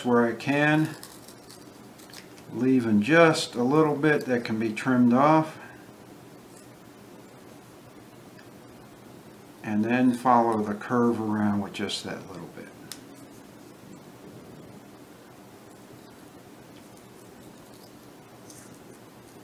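Scissors snip through thin, brittle material close by.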